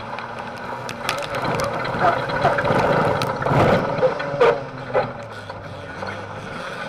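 Gravel and dirt clatter against the underside of the car.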